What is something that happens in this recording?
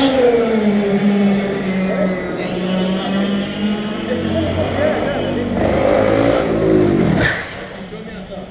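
A go-kart engine drones and revs close by.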